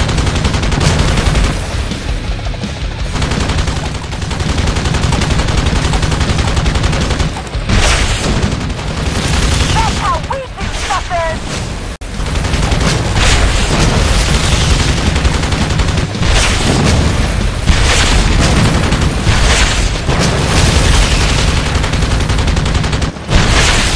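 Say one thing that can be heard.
A helicopter's rotor thumps steadily.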